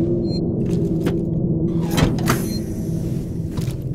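A lever clunks as it is pulled down.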